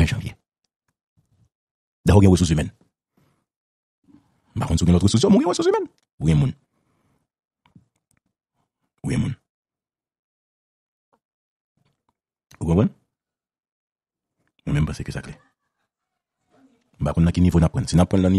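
A man speaks with animation in bursts over a phone line.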